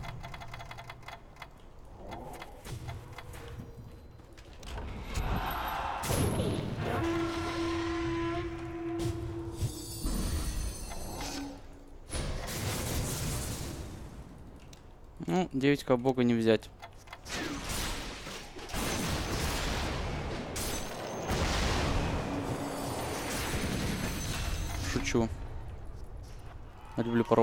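Video game combat sounds clash and burst with magical blasts.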